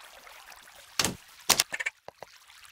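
A pickaxe strikes stone blocks.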